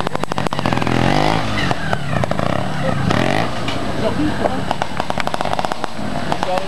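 A motorbike engine revs up and down close by.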